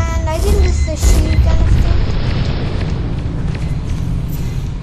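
Explosions boom loudly.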